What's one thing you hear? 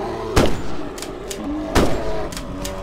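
A rifle fires two loud shots.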